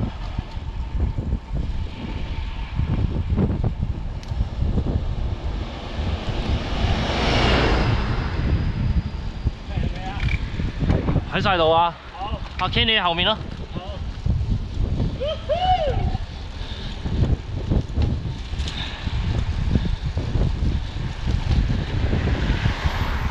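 Wind rumbles loudly across a moving microphone outdoors.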